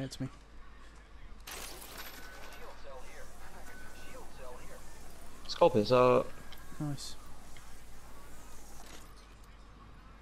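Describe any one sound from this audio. A zipline whirs as something slides along a cable.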